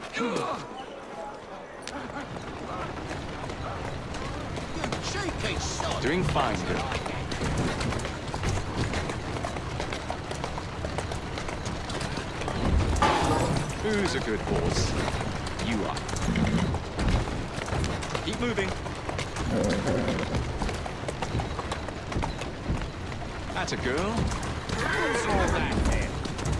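Horse hooves clop steadily.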